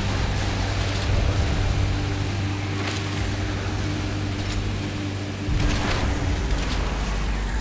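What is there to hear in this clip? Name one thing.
Water splashes and sprays behind a speeding boat.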